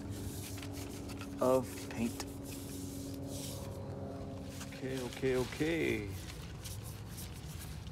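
A paintbrush daubs paint onto a tree trunk.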